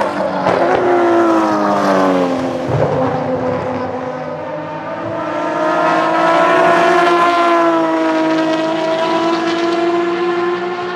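Racing car engines roar loudly as the cars speed past, their pitch rising and falling.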